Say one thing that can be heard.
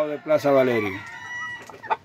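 A rooster crows close by.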